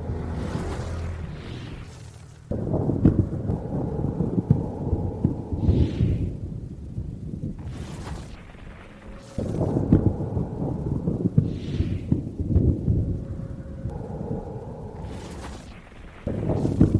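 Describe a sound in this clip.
Spell blasts and weapon strikes crash and boom in quick bursts during a game battle.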